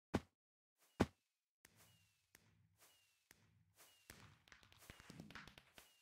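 Fireworks burst with sharp pops and crackles, again and again.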